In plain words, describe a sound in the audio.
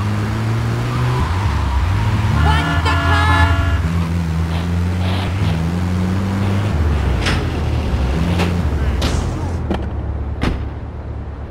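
A van engine hums steadily as it drives.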